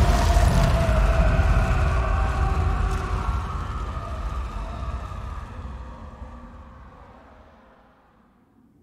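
A waterfall rushes and roars, then fades away.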